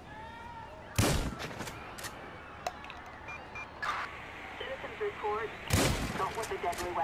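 Gunshots ring out loudly, with echoes.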